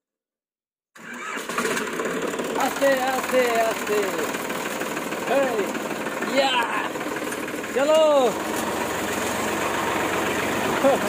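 A tractor engine runs steadily close by.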